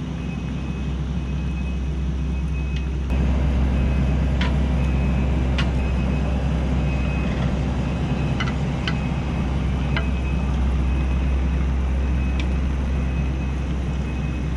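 A diesel engine of a tracked loader rumbles steadily close by.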